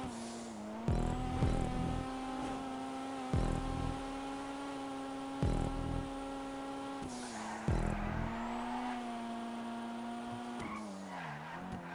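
Car tyres screech as the car slides through bends.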